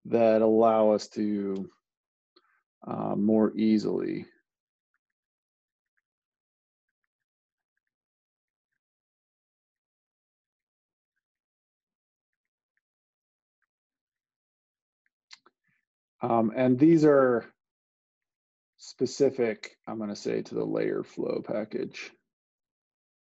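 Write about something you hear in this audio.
A man speaks calmly into a microphone, explaining.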